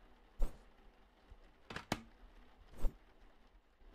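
A sandwich maker's lid clunks shut.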